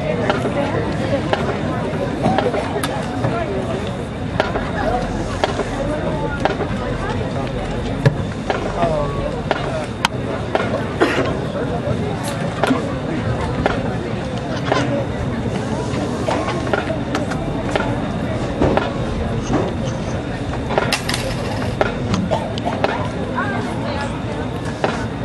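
Wind buffets the microphone outdoors in a large open space.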